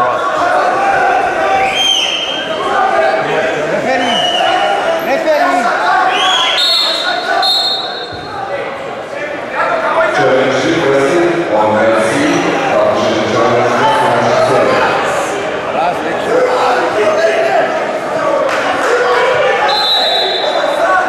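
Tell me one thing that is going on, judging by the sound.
A crowd in a large echoing hall shouts and cheers.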